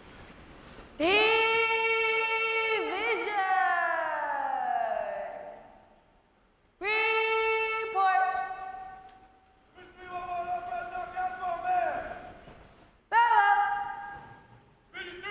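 A man shouts long, drawn-out commands that echo through a large hall.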